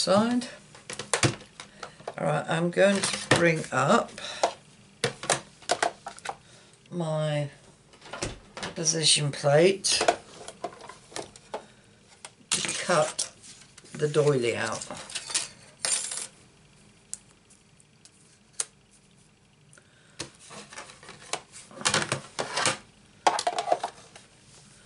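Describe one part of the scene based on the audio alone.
Thin plastic plates and paper rustle and tap as hands handle them.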